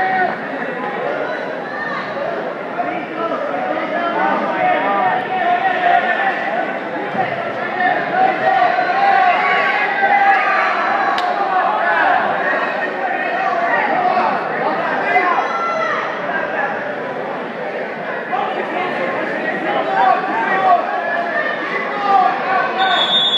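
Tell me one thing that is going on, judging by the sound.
A crowd of spectators shouts encouragement in an echoing gymnasium.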